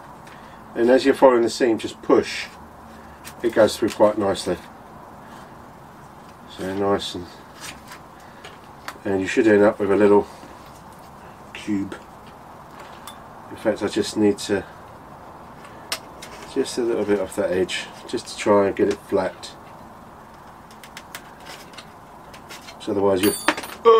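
Small plastic parts click and tap as a man handles a model plane.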